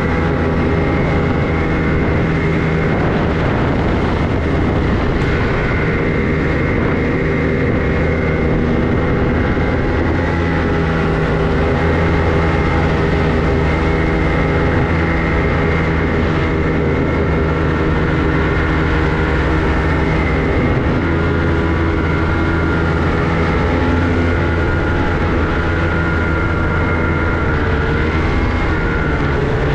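A snowmobile engine drones as the snowmobile cruises along a packed snow trail.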